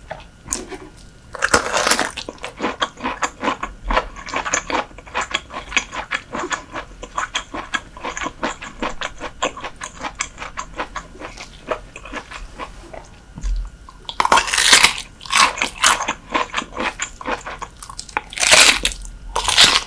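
A young woman bites into crunchy food close to a microphone.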